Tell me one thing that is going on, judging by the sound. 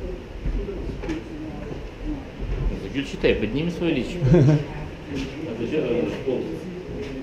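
Several men and women talk and murmur close by.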